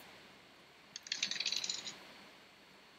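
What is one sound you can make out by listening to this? Dice rattle briefly as they are rolled.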